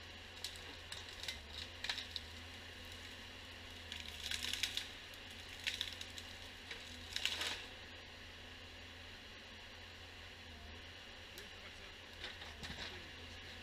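A forestry machine engine hums steadily.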